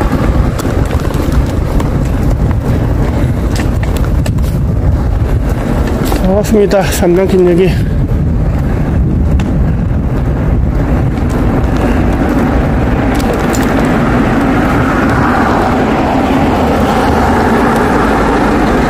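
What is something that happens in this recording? Wind buffets a microphone on a moving bicycle.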